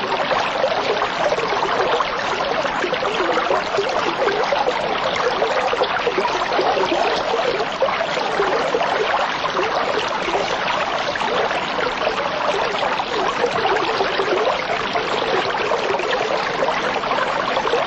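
Air bubbles gurgle and fizz steadily underwater.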